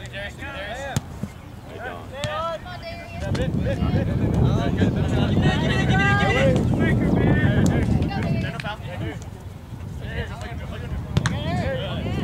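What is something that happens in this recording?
A soccer ball is kicked with a dull thud.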